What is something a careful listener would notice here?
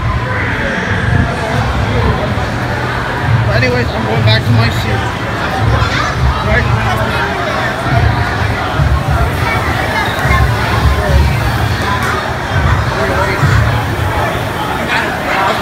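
A crowd chatters all around in a large echoing space.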